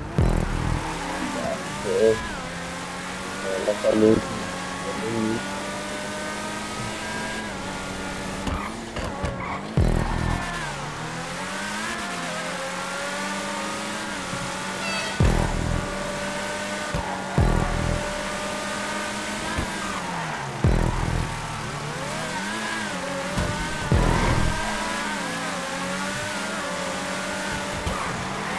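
A powerful racing car engine roars, revving up and down as the gears shift.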